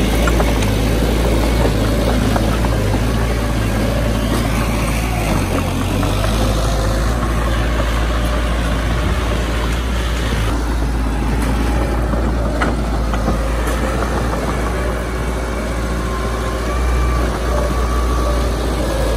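A small bulldozer's diesel engine rumbles steadily close by.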